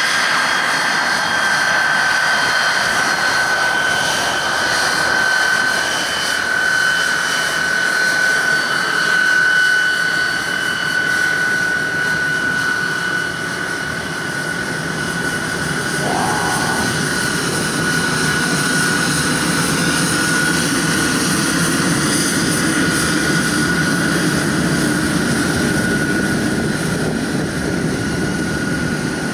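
A jet engine whines loudly and steadily as an airliner taxis past.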